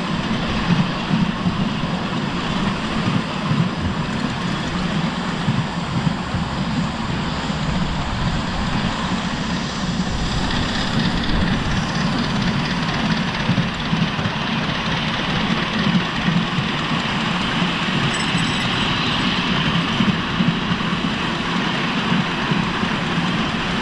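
A miniature steam train rumbles and clatters steadily along a track outdoors.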